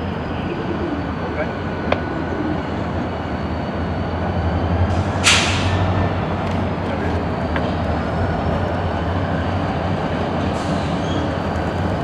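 Diesel locomotives rumble steadily as they roll slowly along the tracks.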